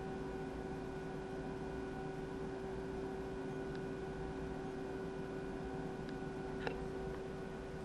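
A steady electronic tone drones.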